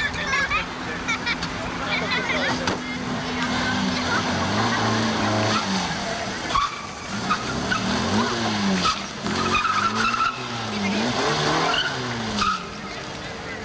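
A small car engine hums and revs as the car drives about.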